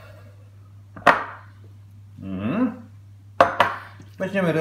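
A small bowl knocks against a countertop.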